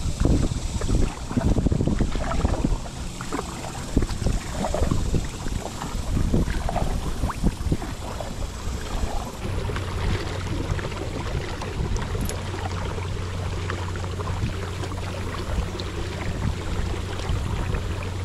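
A kayak paddle splashes through water in steady strokes.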